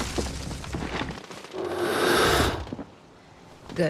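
Leafy branches rustle as someone pushes through a bush.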